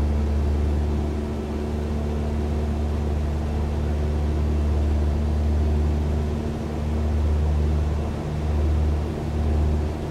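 A small propeller plane's engine drones steadily from inside the cabin.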